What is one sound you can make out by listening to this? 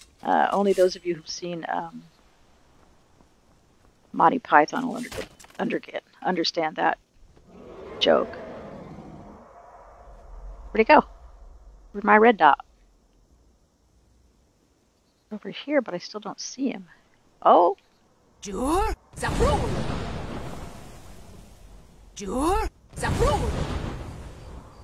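A woman talks with animation into a nearby microphone.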